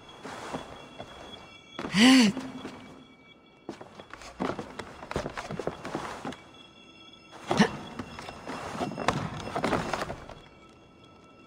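Hands and feet knock and scrape on carved wood during a climb.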